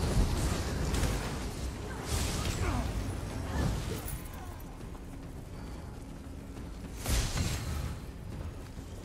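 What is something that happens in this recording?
Spell blasts and combat impacts crash and whoosh.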